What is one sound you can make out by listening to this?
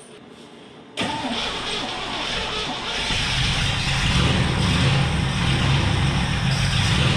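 A truck engine starts and runs loudly.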